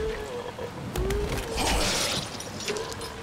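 A heavy weapon thuds into flesh with a wet smack.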